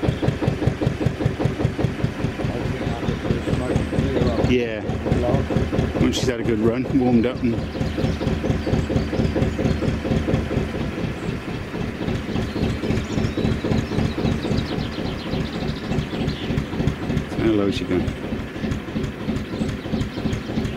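A narrowboat's engine idles with a steady thumping beat.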